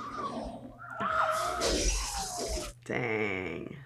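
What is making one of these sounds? A young woman shouts in surprise.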